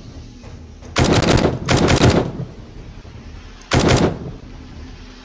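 A rifle fires loud, booming shots that echo briefly.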